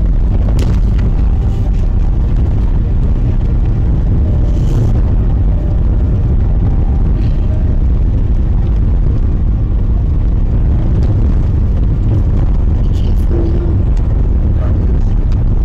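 Tyres crunch over a snowy road.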